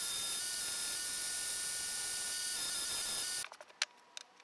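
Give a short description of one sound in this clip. A belt sander whirs steadily.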